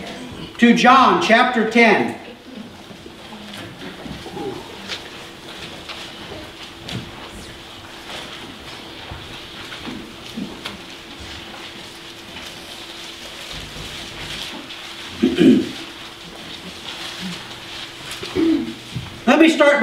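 A man speaks calmly into a microphone in an echoing room, pausing often.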